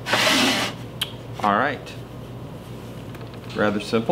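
A clay bowl scrapes softly as it is lifted off a potter's wheel.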